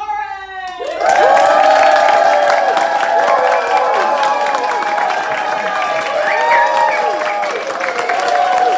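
Women in the audience cheer and whoop.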